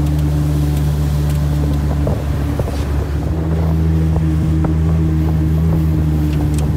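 A boat motor drones steadily at a low pitch.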